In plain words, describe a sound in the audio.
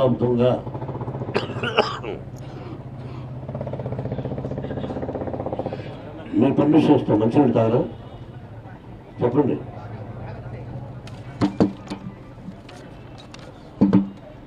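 A middle-aged man speaks with animation into a microphone, heard through loudspeakers in a room.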